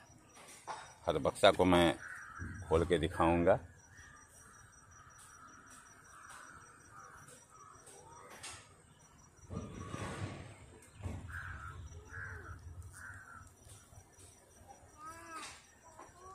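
Bees buzz steadily in a hive.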